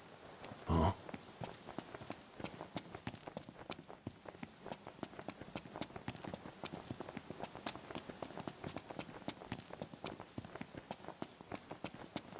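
Quick footsteps run over dry, crunchy ground.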